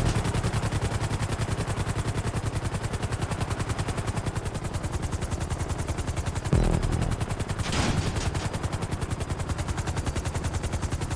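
A helicopter engine whines steadily.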